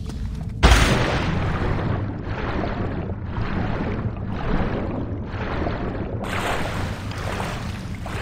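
Water swishes and gurgles with regular swimming strokes.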